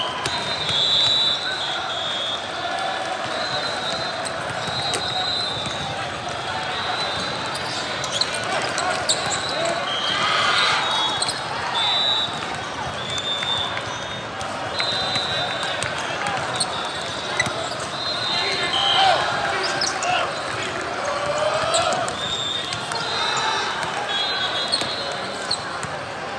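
Shoes squeak sharply on a hard court floor in a large echoing hall.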